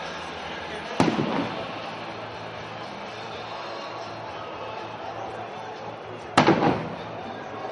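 Firecrackers bang sharply in the stands.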